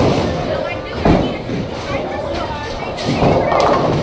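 A bowling ball thuds onto a lane and rolls away.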